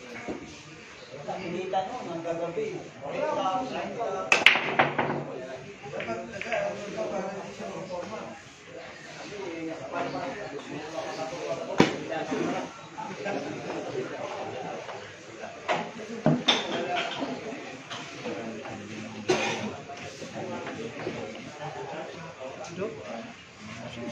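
Men chatter and call out nearby.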